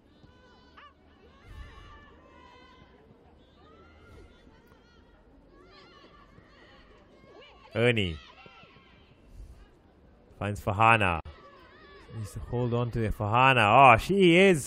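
A football is kicked across a grass pitch.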